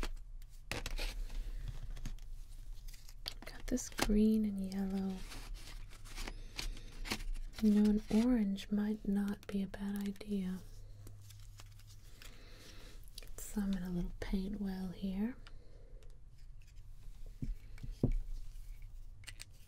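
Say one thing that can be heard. Plastic paint tubes clack and rattle as hands sort through them.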